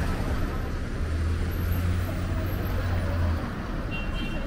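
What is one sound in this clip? A motorbike engine rumbles past close by.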